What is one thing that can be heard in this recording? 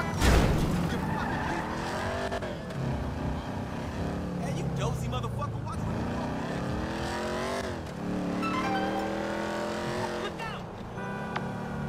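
A car engine revs hard, climbing in pitch and dropping back as it shifts gears.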